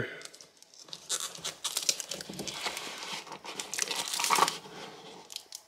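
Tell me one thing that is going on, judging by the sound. A watch is pulled from a foam box insert with soft scraping and rustling.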